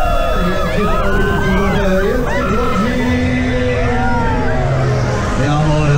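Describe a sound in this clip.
A fairground ride whirs and rumbles as it swings round.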